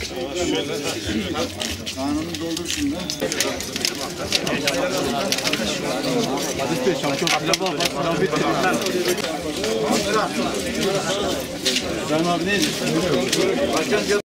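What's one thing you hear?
Spoons and plates clink.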